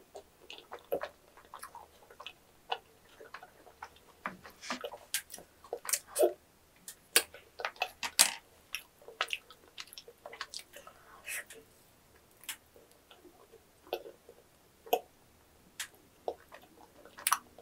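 A young woman chews crunchy food loudly and wetly, close to a microphone.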